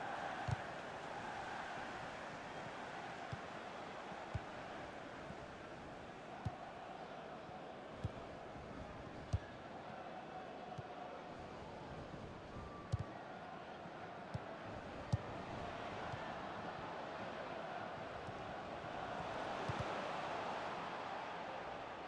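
A stadium crowd roars steadily and swells near the end.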